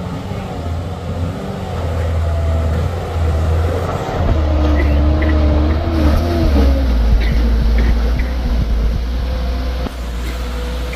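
A truck engine rumbles as it climbs slowly toward and past, loudest up close.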